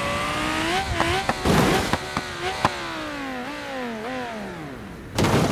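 A car engine revs and whines, rising and falling in pitch.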